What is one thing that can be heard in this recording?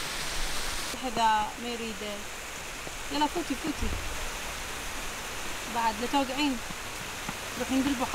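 A young girl talks briefly outdoors.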